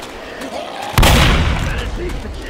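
A single loud gunshot booms.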